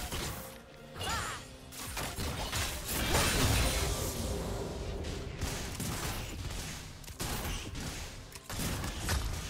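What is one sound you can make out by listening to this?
Weapons hit with quick sharp impacts.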